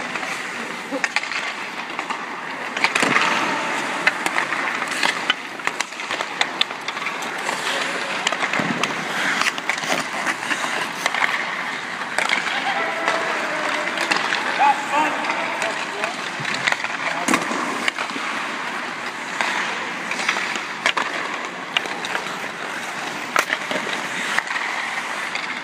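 Hockey pucks smack off sticks with sharp clacks.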